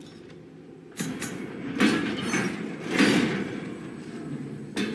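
Metal bars rattle as they are shaken by hand.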